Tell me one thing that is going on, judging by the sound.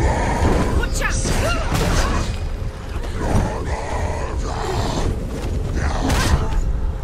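Sword blows clash and swish in quick bursts.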